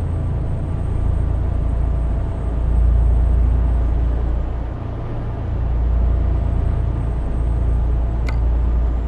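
A truck engine hums low and steadily.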